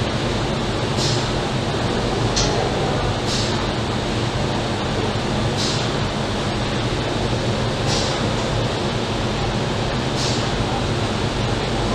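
Industrial machinery hums steadily.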